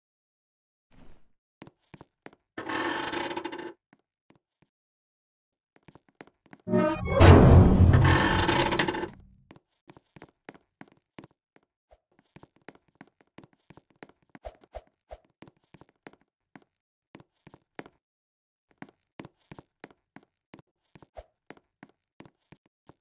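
Footsteps patter quickly and lightly in a game.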